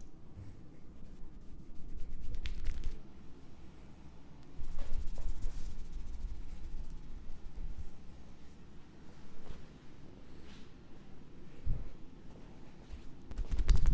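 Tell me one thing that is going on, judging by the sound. Hands rub and scratch through hair with a soft rustle.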